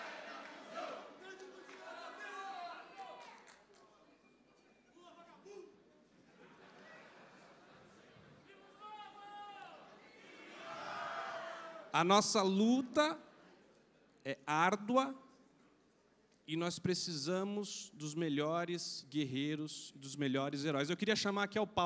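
A man speaks forcefully into a microphone over loudspeakers in a large echoing hall.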